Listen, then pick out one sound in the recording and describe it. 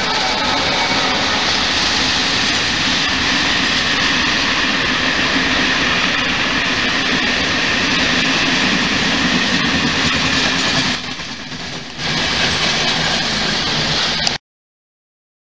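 A freight train rumbles past on the tracks.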